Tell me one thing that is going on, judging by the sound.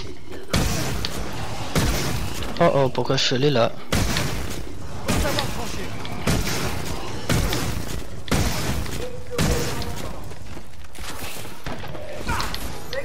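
An energy gun fires in short bursts.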